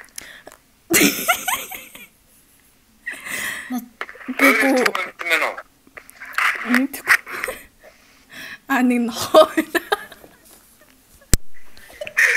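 A second young woman laughs close by.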